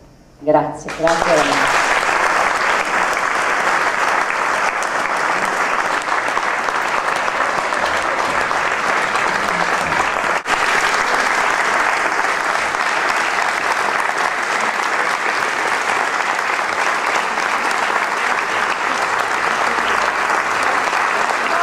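An audience applauds steadily in a large echoing hall.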